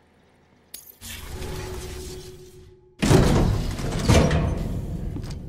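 A deep whooshing rumble swells as a game scene begins.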